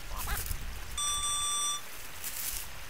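A metal detector beeps with a steady high tone.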